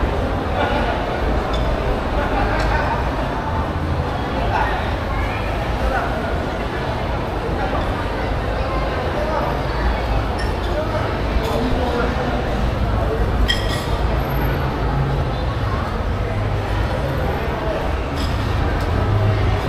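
A crowd murmurs in a large echoing indoor hall.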